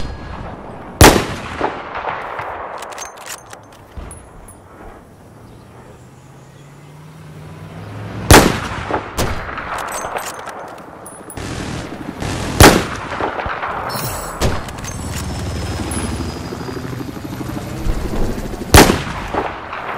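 A rifle fires loud single shots that echo and roll away.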